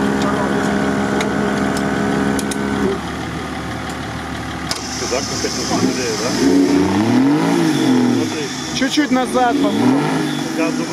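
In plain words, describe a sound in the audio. An off-road vehicle's engine rumbles and revs hard, rising and falling in pitch.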